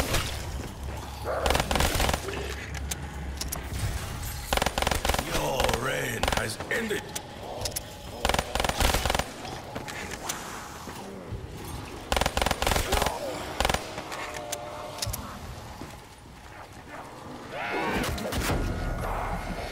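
Zombies growl and snarl nearby.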